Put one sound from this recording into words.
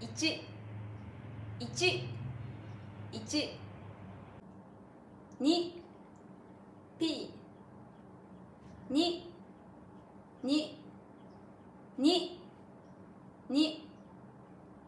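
A young woman close to the microphone says short words one at a time, brightly, as in a lesson.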